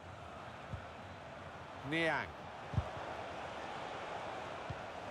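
A football is kicked with short dull thumps.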